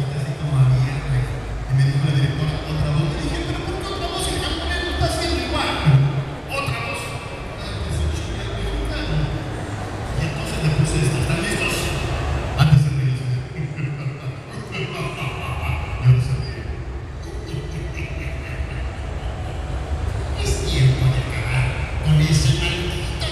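Loud music with a heavy beat plays over loudspeakers.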